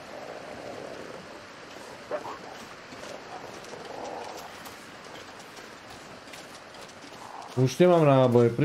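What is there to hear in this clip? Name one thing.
Wind howls steadily through a snowstorm.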